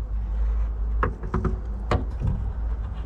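Plastic parts click and snap as a lamp holder is fitted.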